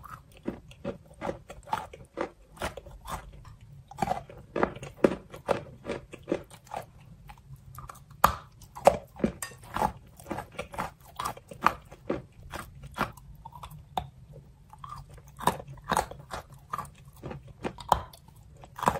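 Soft, sticky material squishes and crunches between fingers close to a microphone.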